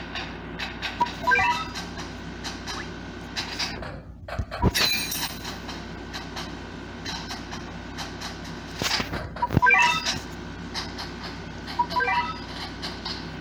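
Short electronic chimes ring out from a game's menu.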